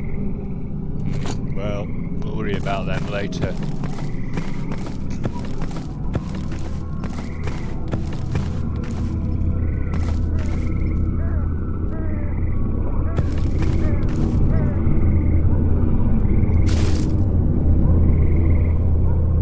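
Footsteps crunch steadily on hard gritty ground.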